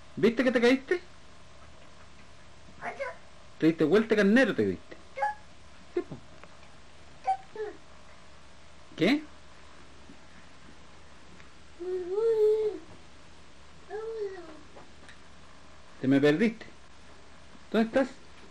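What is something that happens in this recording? A young child babbles and squeals close by.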